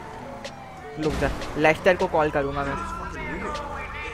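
A car crashes into a truck with a loud bang.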